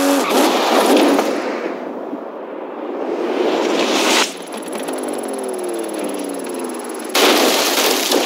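A car engine roars at high revs.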